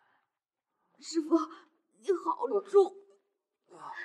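A young woman speaks with strain, close by.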